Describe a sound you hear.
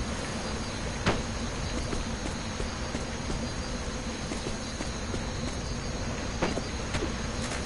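Light footsteps patter quickly on the ground.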